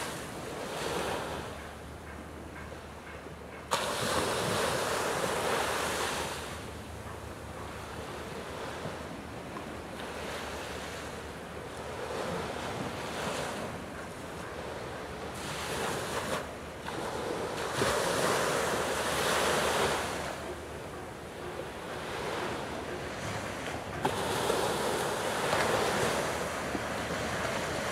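Water laps gently against the shore.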